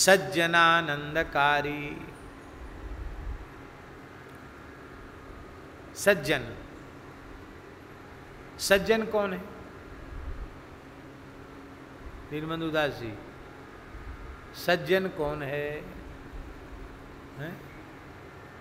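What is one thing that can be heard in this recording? An elderly man speaks slowly and deliberately into a close microphone, with long pauses.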